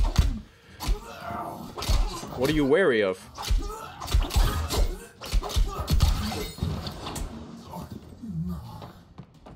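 Magic spells crackle and whoosh.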